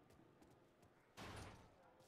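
Footsteps run across pavement.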